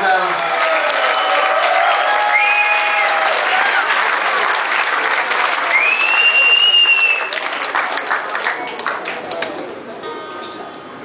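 A crowd cheers and shouts in a loud hall.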